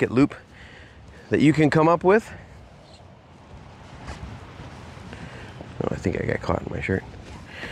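Cloth rustles as a man handles a bundle of fabric.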